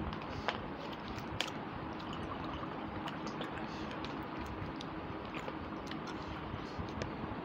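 A woman chews food close to a microphone.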